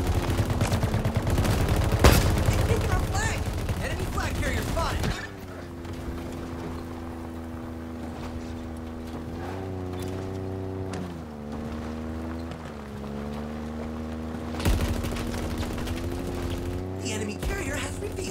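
A vehicle engine hums and revs up and down.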